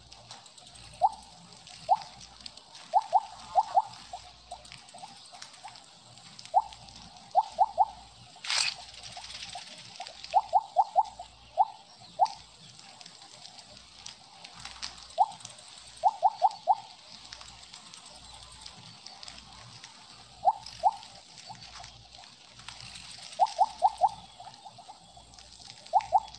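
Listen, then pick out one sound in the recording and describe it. Short bright electronic blips chime in quick bursts.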